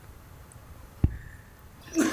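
Feet thump on a mat.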